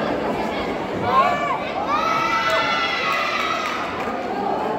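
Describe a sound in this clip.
Young people cheer and shout loudly.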